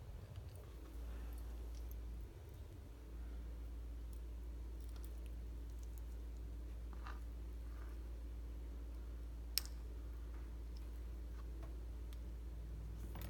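Fingers handle a wet fish with faint, soft clicks and rustles.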